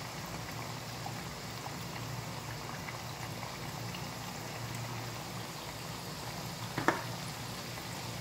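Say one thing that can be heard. Food sizzles and crackles in hot oil in a pan.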